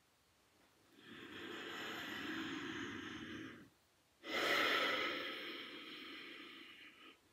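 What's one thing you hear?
A woman breathes in and out slowly and audibly.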